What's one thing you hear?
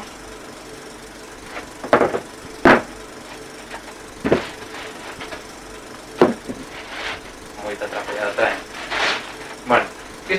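Cardboard and plastic wrapping rustle and crinkle as a box is unpacked.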